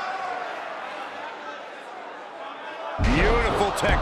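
A body slams down hard onto a wrestling mat.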